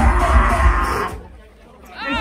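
A crowd of young people cheers and shouts loudly.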